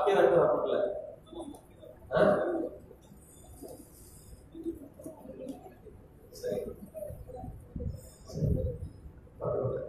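A middle-aged man speaks calmly into a headset microphone, heard through a loudspeaker.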